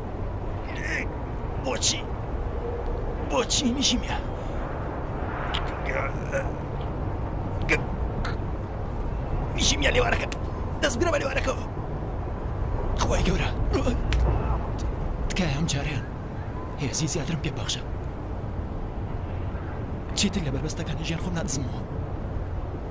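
A young man sobs and gasps.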